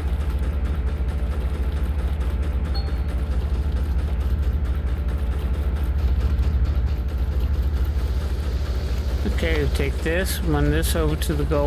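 A machine hums and throbs steadily.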